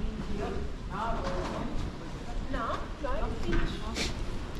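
A woman talks calmly nearby outdoors.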